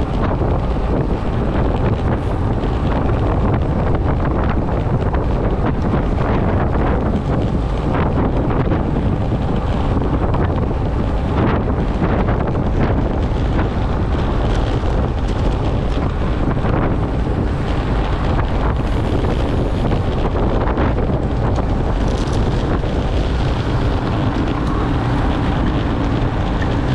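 Wind rushes loudly and steadily past close by.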